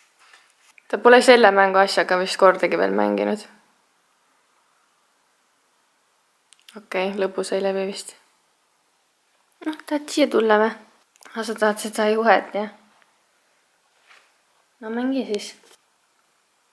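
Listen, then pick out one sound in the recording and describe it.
A woman talks softly and playfully close by.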